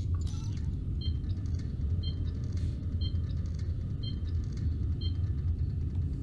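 Electronic beeps sound at a steady pace.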